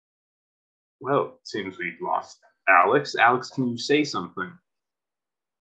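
Another young man speaks calmly over an online call.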